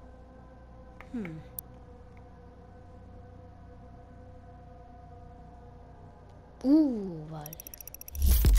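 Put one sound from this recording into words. A menu selection sounds with a short falling electronic tone.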